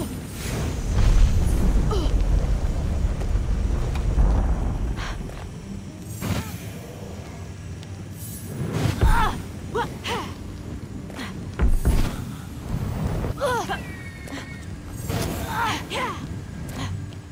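A fireball roars and crackles with a low rumble.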